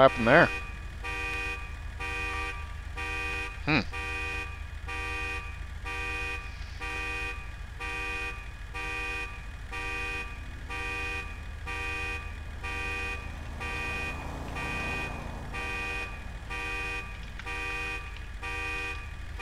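A pickup truck engine rumbles steadily.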